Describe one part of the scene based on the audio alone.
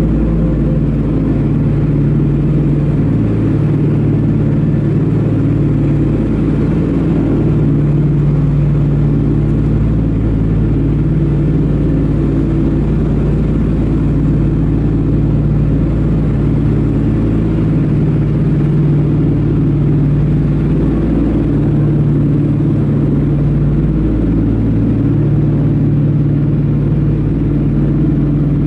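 Propeller engines drone loudly and steadily.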